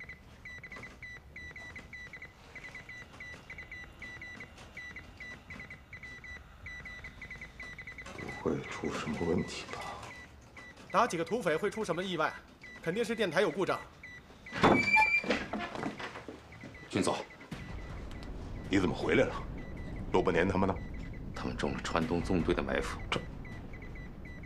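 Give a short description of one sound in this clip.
Morse code beeps in short, rapid pulses.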